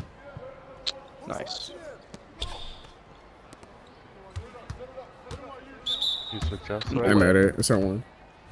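Sneakers squeak on a basketball court.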